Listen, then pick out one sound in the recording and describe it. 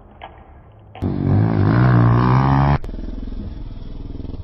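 A motorcycle engine revs loudly close by.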